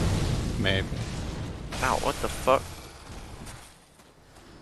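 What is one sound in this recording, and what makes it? Blades slash and strike in a fierce fight.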